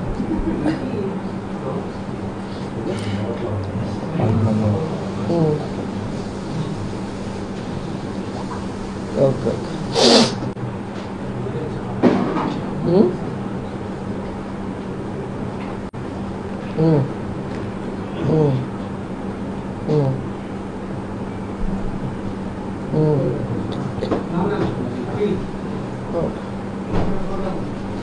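A middle-aged woman talks into a phone in short, calm bursts close by, with pauses between them.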